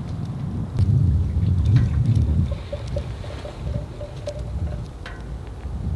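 Wine glugs as it is poured into a glass.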